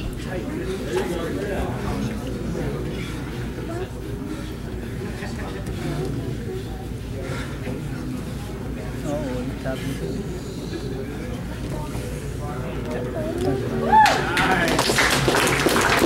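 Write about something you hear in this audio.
A man explains calmly to a group, close by.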